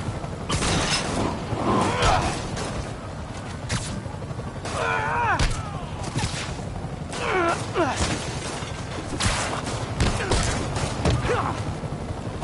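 Heavy thuds and blows land in a scuffle.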